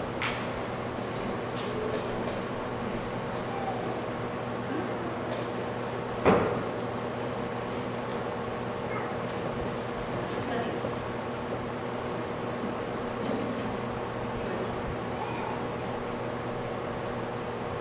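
A fan hums steadily in a large, echoing room.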